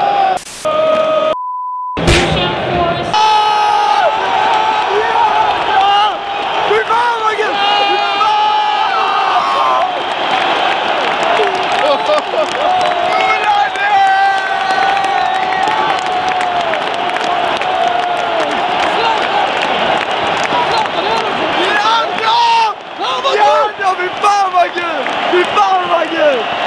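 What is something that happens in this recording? A large stadium crowd sings and chants loudly in a big echoing space.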